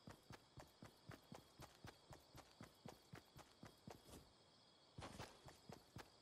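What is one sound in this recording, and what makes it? A game character's footsteps patter quickly over grass.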